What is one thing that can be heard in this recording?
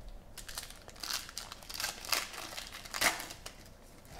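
A foil wrapper crinkles and tears as hands rip a pack open.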